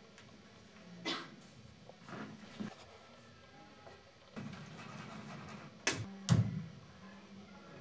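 Feet thud and stamp on a wooden stage.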